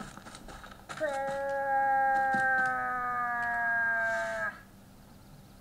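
A moose call is blown in one long, loud, slowly falling moan.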